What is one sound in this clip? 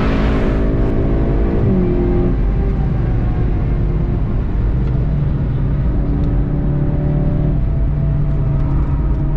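A car engine roars steadily at speed, shifting pitch as it brakes and accelerates.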